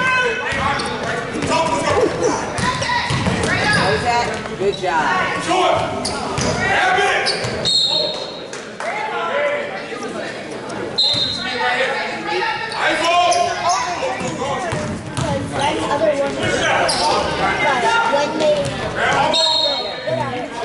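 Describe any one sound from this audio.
Spectators in a large echoing gym chatter and call out throughout.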